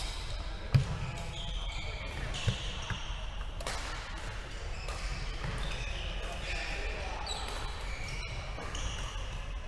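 Shuttlecocks are hit with sharp pops of rackets in a large echoing hall.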